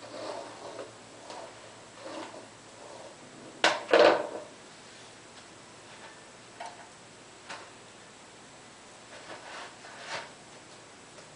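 Hair rustles as a woman gathers and ties it.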